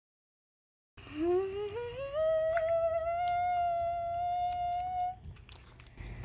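A young boy hums excitedly in a rising tune.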